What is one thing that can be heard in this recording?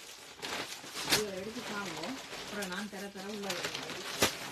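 A woman speaks nearby.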